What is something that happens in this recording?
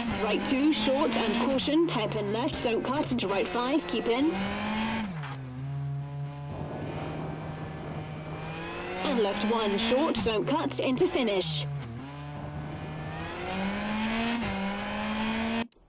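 A rally car engine roars and revs up and down through gear changes.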